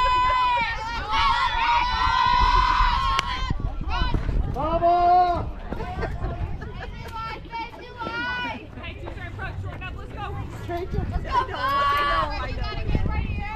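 Young women shout and cheer loudly nearby.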